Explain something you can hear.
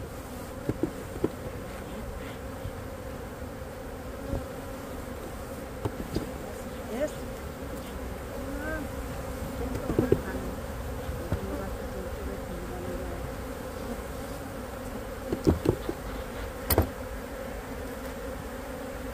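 Bees buzz in a dense swarm nearby.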